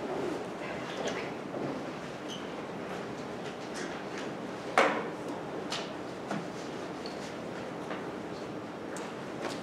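A man speaks into a microphone, heard through loudspeakers in an echoing hall.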